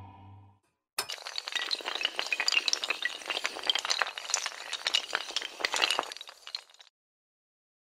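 Falling tiles clatter rapidly against each other.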